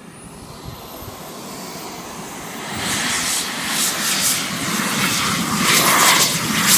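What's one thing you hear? A small model jet engine whines loudly, growing louder as it races closer.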